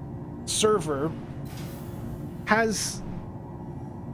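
A heavy sliding door whooshes open.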